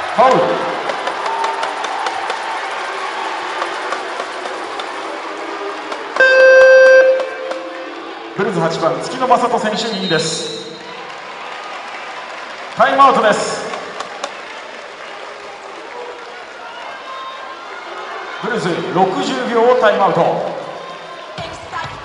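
A large crowd cheers and chants in a big echoing arena.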